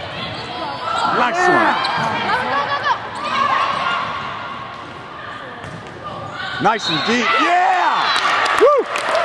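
Players' shoes squeak sharply on a hard court.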